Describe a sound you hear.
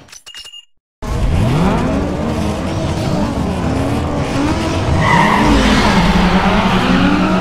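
Several car engines rev loudly together at a starting line.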